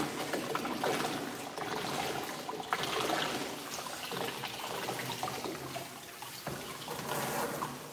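Hands rub and lather a wet dog's fur with soft squelching.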